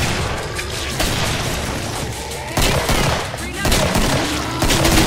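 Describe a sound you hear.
Gunshots ring out loudly, one after another.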